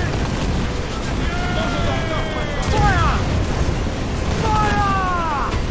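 Cannons boom in heavy, sudden blasts.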